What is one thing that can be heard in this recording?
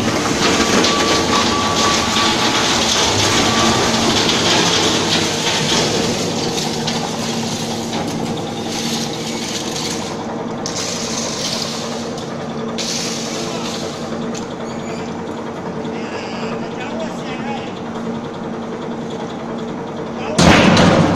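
Heavy machinery hums and rumbles steadily in a large echoing hall.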